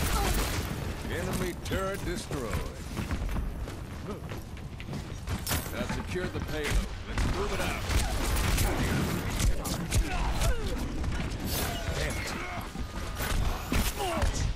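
Gunshots from a revolver fire in quick bursts.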